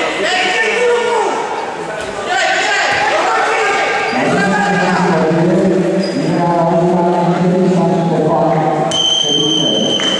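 Men shout loudly across a large echoing hall.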